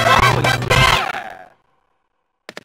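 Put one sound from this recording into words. A cheerful video game victory tune plays loudly.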